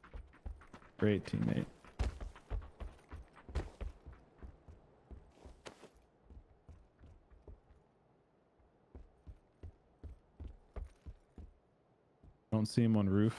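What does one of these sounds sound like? Footsteps thud steadily on wooden floors.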